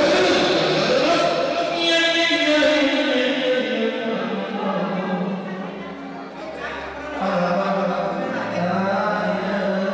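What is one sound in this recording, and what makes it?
A crowd of men chatters.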